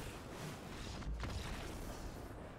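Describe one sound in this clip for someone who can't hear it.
An explosion booms in a game.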